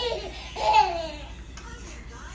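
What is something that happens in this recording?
A baby squeals and giggles close by.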